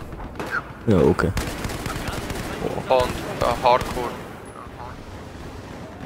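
Gunfire cracks in short bursts.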